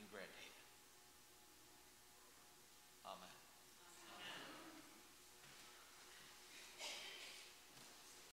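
A man speaks or chants calmly through a microphone in an echoing room.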